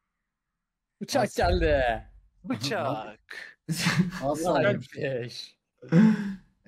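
A young man speaks excitedly close to a microphone.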